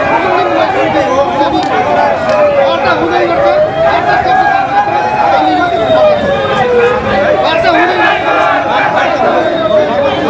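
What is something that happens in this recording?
A man argues loudly with animation close by.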